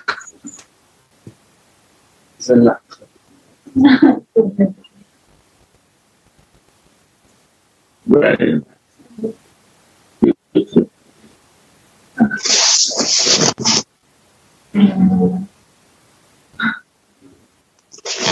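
An elderly man speaks calmly and haltingly through an online call.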